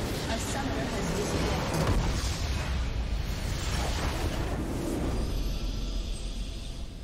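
A massive crystal shatters and explodes with a loud, rumbling roar.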